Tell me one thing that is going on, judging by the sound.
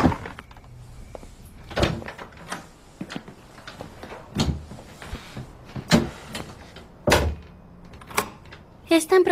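Footsteps tread slowly across a floor indoors.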